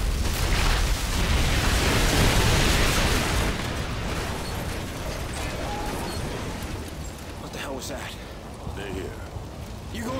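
Fire roars and crackles nearby.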